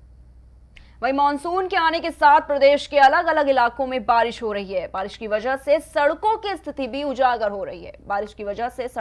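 A young woman reads out the news clearly through a microphone.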